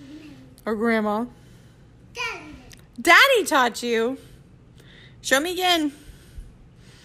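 A little girl whines and cries loudly nearby.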